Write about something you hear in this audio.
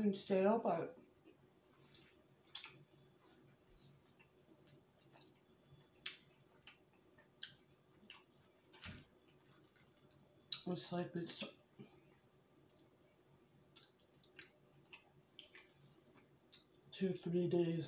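A woman chews food with soft, wet smacking sounds.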